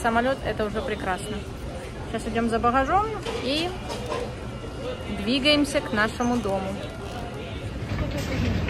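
A young woman talks close up, calmly and with animation.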